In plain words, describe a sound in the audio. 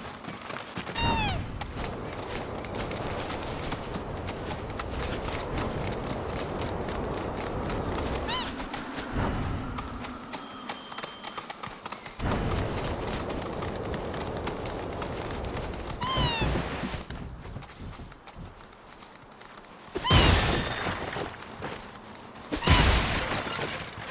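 A large bird lets out short, high warbling calls.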